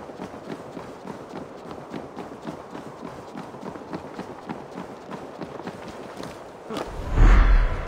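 Footsteps thud quickly on wood.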